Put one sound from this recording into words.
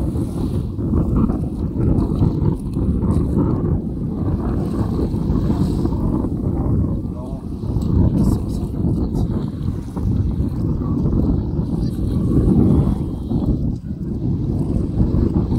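Small waves lap at the shore.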